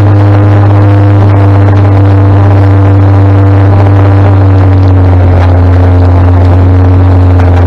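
A motorcycle engine hums steadily close by, its pitch dipping slightly.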